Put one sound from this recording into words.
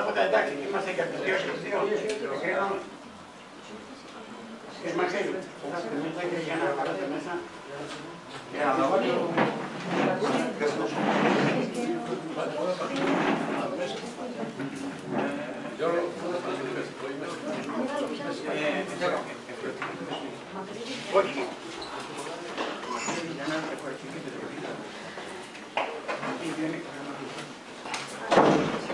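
Several men talk over one another.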